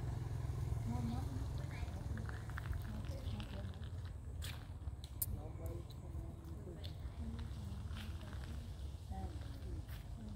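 A monkey bites and chews juicy fruit up close.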